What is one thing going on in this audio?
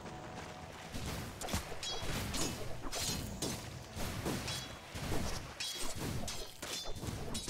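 Weapons clash and magic effects crackle in a video game battle.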